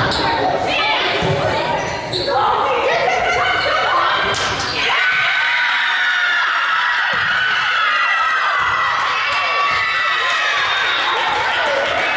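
Sneakers squeak on a hard court in a large echoing gym.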